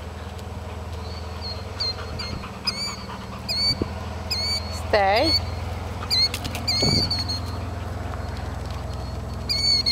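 A dog's paws patter across gravel and grass.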